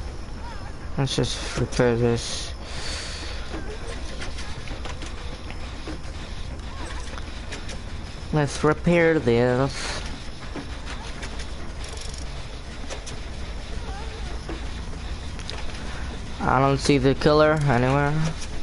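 A machine rattles and clanks as it is worked on.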